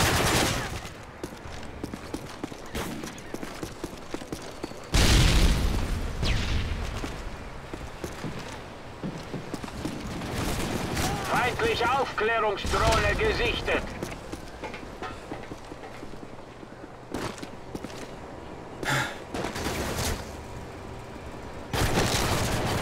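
Footsteps patter quickly on hard floors.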